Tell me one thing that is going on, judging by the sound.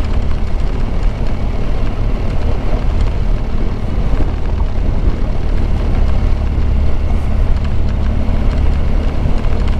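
Tyres rumble over a rough gravel road.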